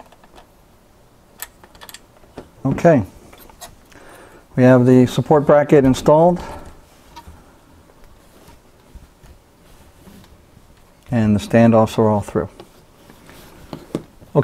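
Small hard parts click and tap as they are handled.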